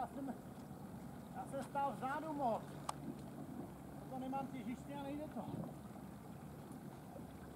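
An outboard motor idles with a low steady hum.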